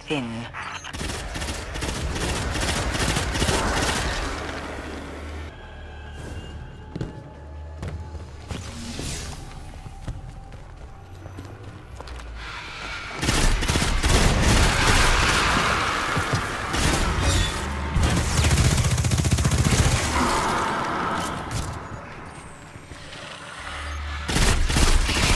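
Rapid gunfire rattles loudly, with sharp blasts and bursts.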